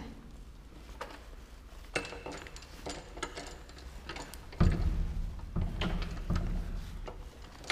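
Metal keys and a latch click and rattle.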